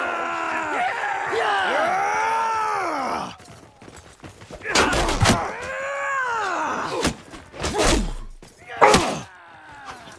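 Metal blades clash and thud in a fight.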